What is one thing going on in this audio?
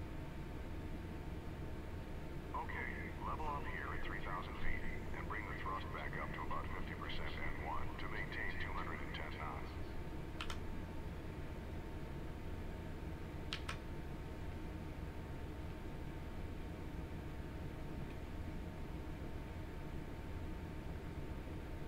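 Jet engines drone steadily in flight.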